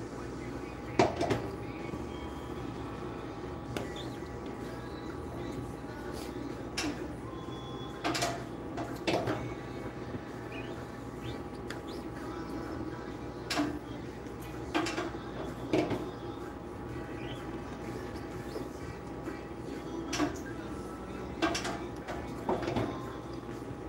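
A metal press frame clanks as it is raised and lowered.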